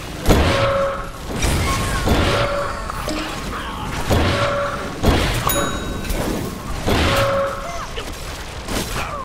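Blasts burst and crackle with impacts.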